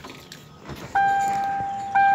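A car warning chime sounds steadily.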